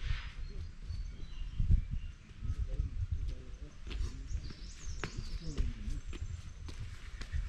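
Footsteps scuff on a paved path, approaching.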